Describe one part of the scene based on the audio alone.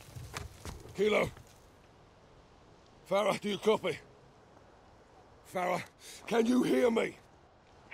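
A man speaks calmly into a radio in short bursts.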